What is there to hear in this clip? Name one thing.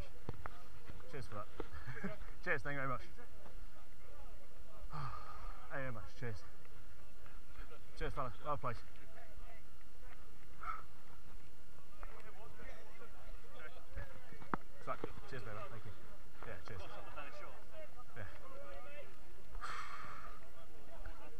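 Young men talk and call out nearby, outdoors.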